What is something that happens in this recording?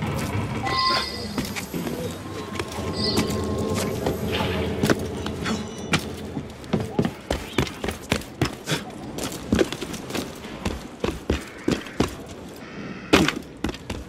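Hands grab and scrape against stone and wood while climbing.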